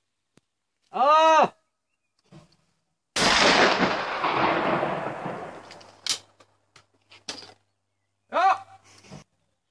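A young man shouts a short, sharp call close by.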